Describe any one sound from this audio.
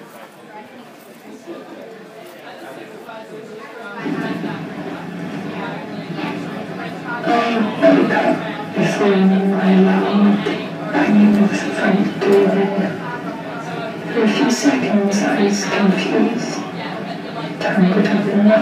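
Electronic music from a performer's gear plays loudly through speakers, growing louder and denser.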